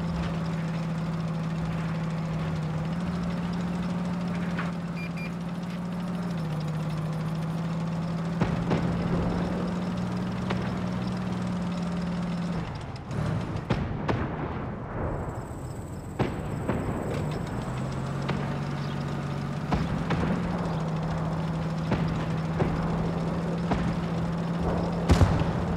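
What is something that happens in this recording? A tank engine rumbles steadily as a tank drives along.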